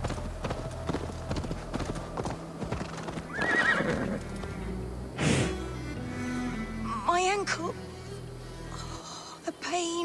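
A horse's hooves thud on a dirt path.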